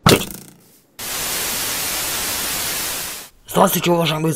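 Loud static hisses steadily.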